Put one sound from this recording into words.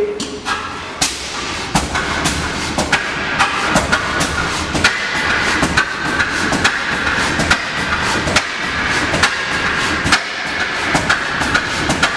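An old gas engine runs with a steady, rhythmic knocking and hissing.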